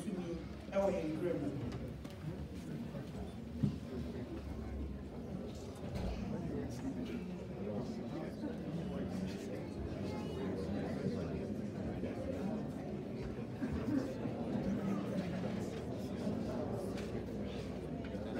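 A crowd of people chatters and murmurs.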